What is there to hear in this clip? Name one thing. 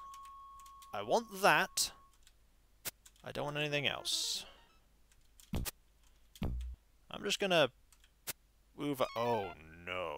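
Electronic game tones warble in quick rising and falling glides.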